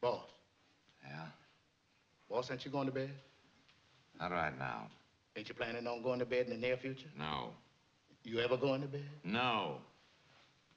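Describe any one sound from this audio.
A man answers quietly and flatly.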